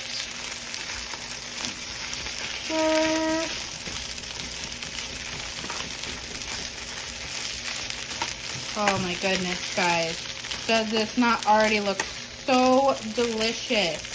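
A spatula scrapes and stirs against a frying pan.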